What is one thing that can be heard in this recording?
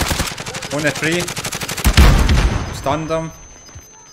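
Gunfire cracks in sharp bursts.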